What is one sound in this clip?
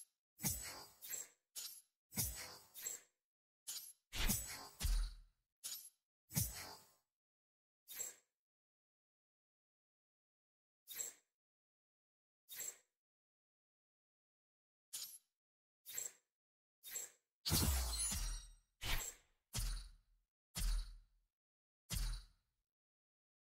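Short electronic menu clicks and chimes sound again and again.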